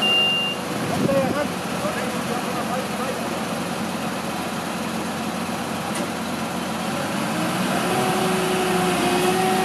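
A diesel fire engine idles.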